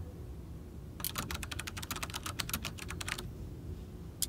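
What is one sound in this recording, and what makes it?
Keyboard keys clatter in a quick burst of typing.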